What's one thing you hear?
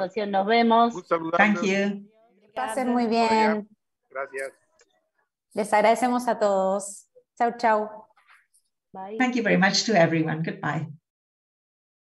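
A young woman speaks warmly over an online call.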